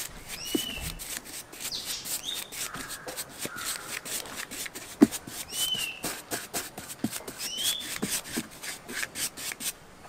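A paintbrush brushes over rubber.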